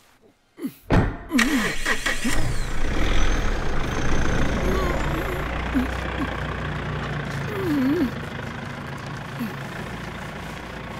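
A vehicle rolls slowly over crunching ground.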